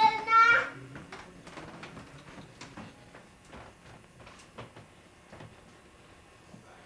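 Small bare feet patter on a wooden floor.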